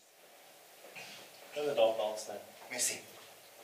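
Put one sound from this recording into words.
A man speaks politely in a quiet room.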